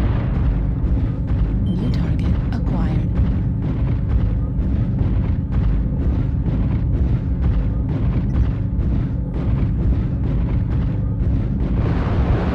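Weapons fire in a rapid, even series of shots.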